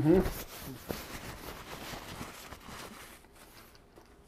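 Paper rustles as a man crumples a paper towel.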